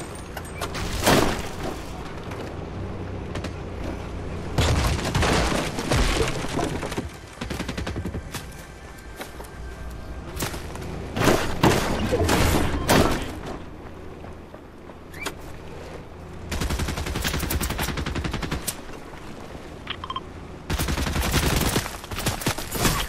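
An off-road buggy's engine hums.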